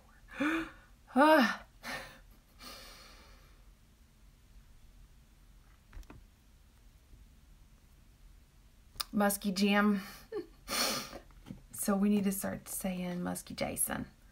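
A woman speaks calmly and chattily close to a microphone.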